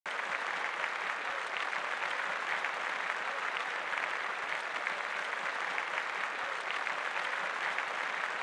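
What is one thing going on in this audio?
A large crowd applauds loudly and steadily in a big hall.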